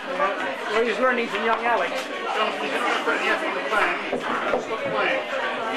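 Billiard balls roll across a table.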